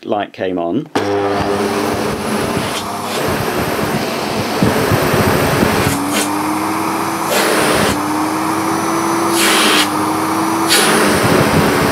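A vacuum cleaner motor switches on and runs with a steady whirring roar.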